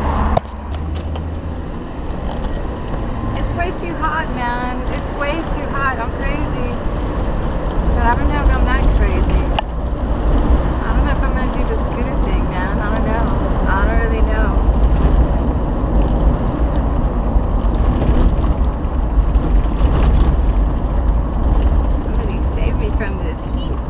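A car engine rumbles steadily inside a moving car.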